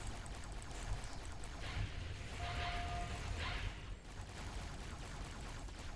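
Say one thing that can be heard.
Energy blasts explode nearby.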